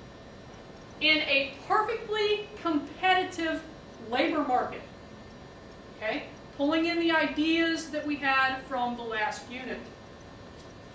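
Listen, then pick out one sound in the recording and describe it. A man speaks calmly, as if lecturing.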